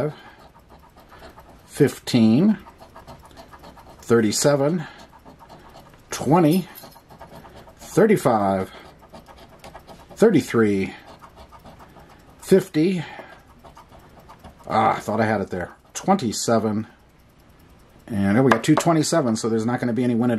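A coin scrapes across a scratch card.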